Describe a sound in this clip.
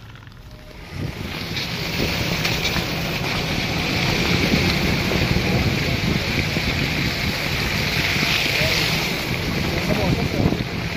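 Wind rushes past a moving car.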